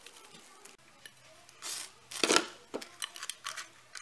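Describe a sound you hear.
A glass bowl knocks and clinks on a wooden table.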